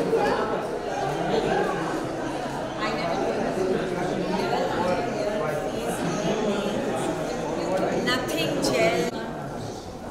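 Two women chat with animation close by.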